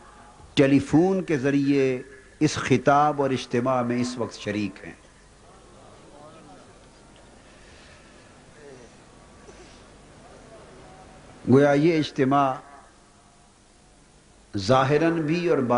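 A man speaks forcefully into a microphone, his voice carried over loudspeakers in a large open space, with long pauses.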